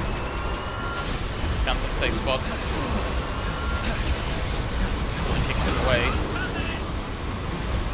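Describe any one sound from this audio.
An energy beam roars and crackles loudly.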